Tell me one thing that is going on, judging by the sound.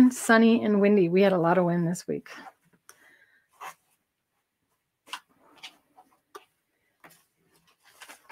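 Fabric rustles as it is folded and smoothed.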